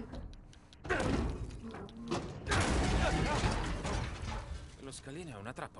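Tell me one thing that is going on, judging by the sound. A heavy iron gate creaks as it is pushed open.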